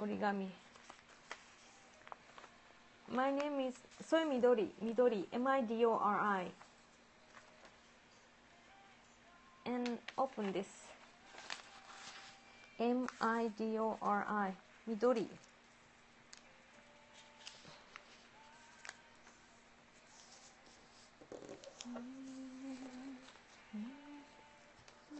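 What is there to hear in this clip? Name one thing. Paper rustles and crinkles as it is folded.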